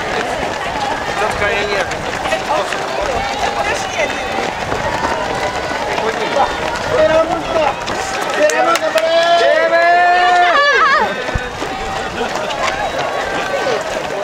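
A crowd of men and women cheers and shouts encouragement close by, outdoors.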